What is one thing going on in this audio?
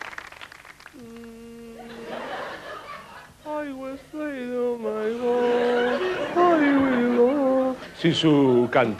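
A man sings long, drawn-out notes into a microphone.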